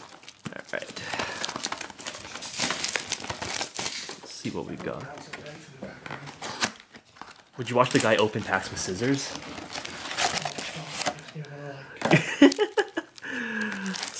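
A cardboard box is opened and its flaps scrape.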